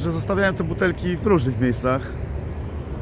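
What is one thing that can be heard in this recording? A middle-aged man speaks close to the microphone.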